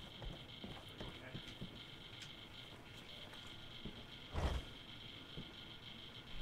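Footsteps thud softly on wooden floorboards.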